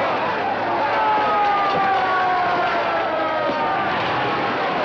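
A fire engine siren wails as it passes.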